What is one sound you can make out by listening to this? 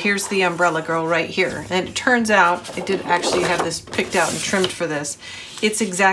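Stiff paper rustles and slides as it is handled.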